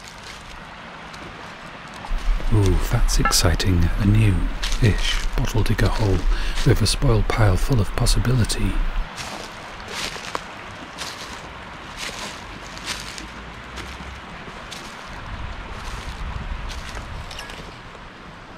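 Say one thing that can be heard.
Footsteps crunch through dry leaves and twigs.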